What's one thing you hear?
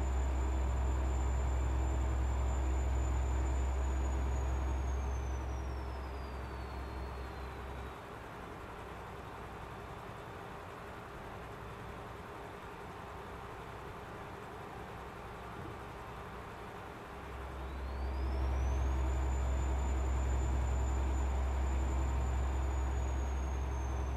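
Tyres roll and hum on a road.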